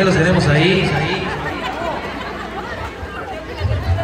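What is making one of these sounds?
A man speaks loudly through a microphone and loudspeaker outdoors.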